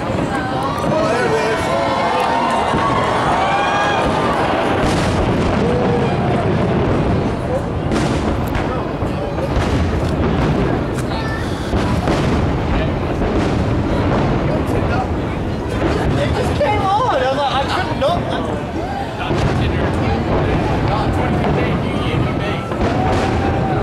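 Fireworks boom and crackle in the distance.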